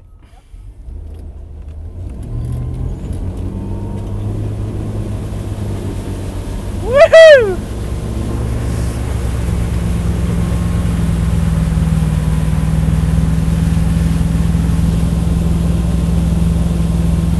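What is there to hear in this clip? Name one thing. A motorboat engine rumbles steadily.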